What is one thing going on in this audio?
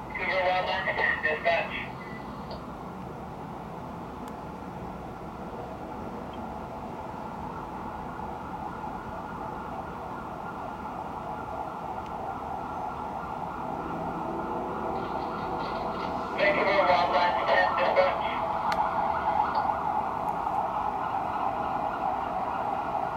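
Distant city traffic hums steadily far below.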